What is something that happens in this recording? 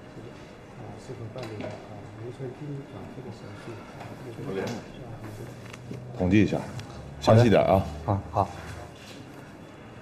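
A middle-aged man speaks calmly nearby.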